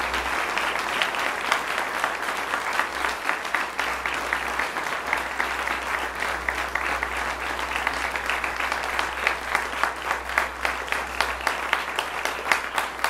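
A large crowd claps in rhythm.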